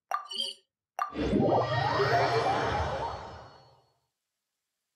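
A shimmering magical whoosh swells and fades away.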